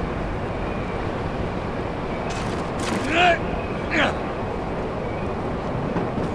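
Footsteps thud on a metal roof.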